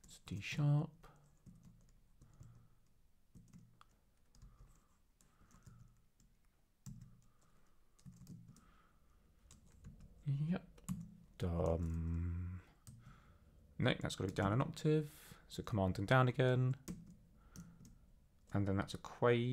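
Keys clack on a computer keyboard.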